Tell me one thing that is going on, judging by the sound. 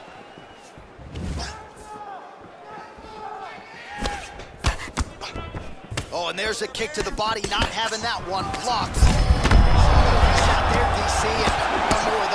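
Fists thud against a body in quick blows.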